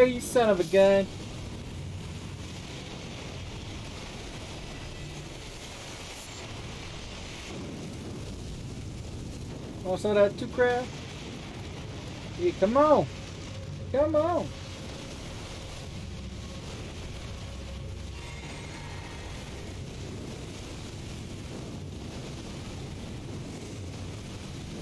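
Flames burst with a roaring whoosh.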